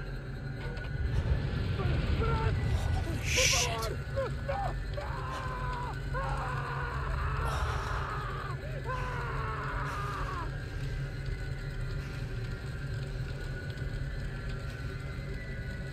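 A large fire bursts into flame and roars.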